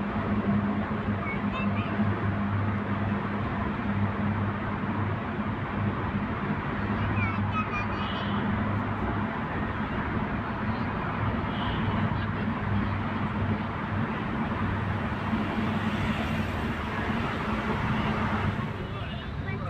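Tyres roar on the road, echoing loudly through a tunnel.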